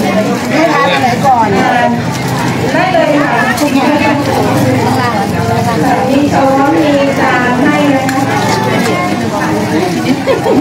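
A crowd of women chatters in the background.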